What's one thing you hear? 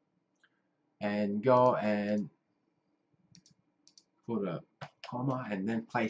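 A middle-aged man speaks calmly and close to a microphone, in short phrases.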